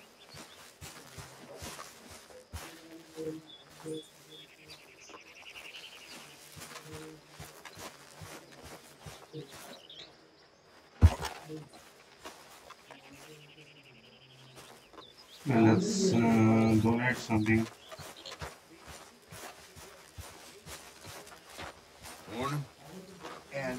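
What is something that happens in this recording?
Footsteps tread on grass.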